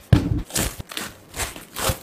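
Plastic wrap crinkles.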